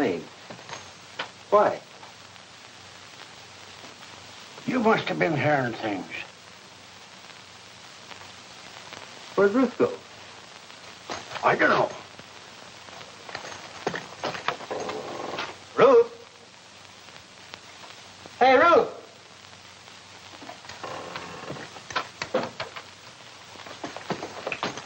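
A man talks in short exchanges, heard through an old film recording.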